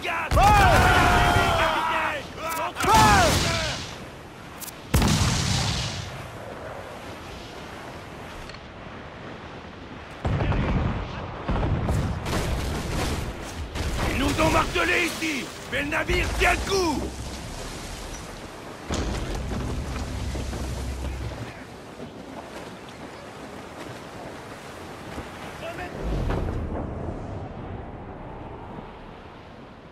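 Ocean waves wash against a ship's hull.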